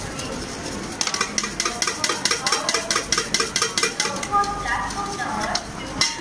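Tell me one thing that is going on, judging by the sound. A metal spoon clinks rapidly against a tin cup.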